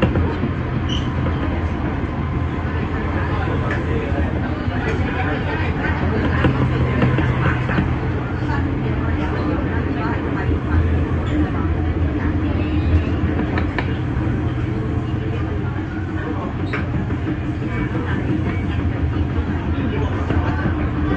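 Rain patters against a window.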